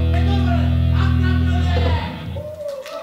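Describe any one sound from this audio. A band plays loud rock music with guitars and drums.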